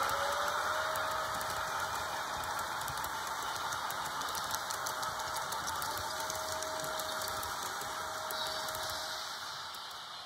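A model train rumbles and clicks along its track close by.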